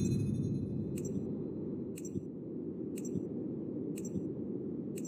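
A short electronic tick sounds once every second as a countdown runs.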